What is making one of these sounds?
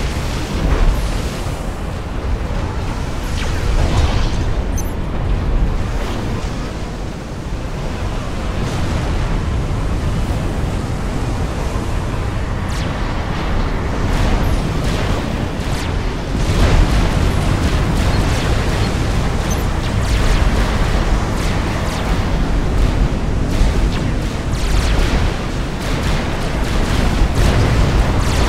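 Explosions and gunfire rumble steadily from a large battle.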